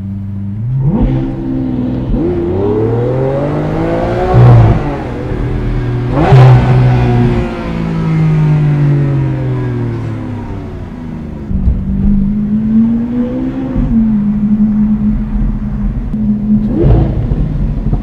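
A car engine crackles and pops on the overrun.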